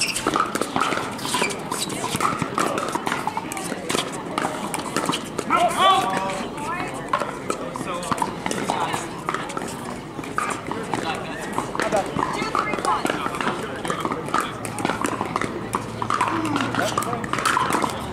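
Paddles pop sharply against a plastic ball, over and over.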